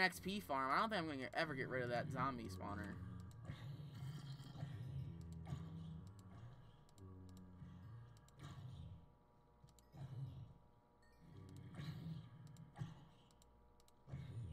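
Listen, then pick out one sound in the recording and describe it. Zombies groan and moan close by.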